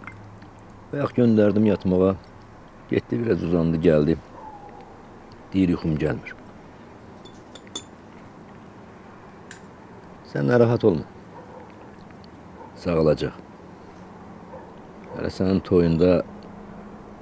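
An elderly man speaks quietly and slowly, close by.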